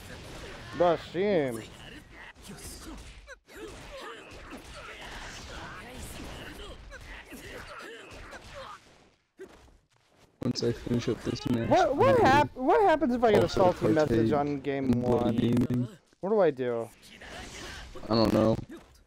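Sword blows land with sharp impact hits.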